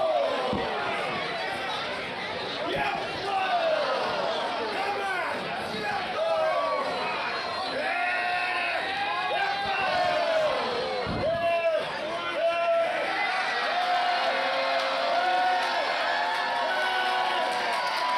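A large crowd cheers and chants outdoors.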